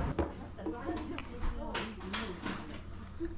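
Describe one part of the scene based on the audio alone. Two glasses clink together in a toast.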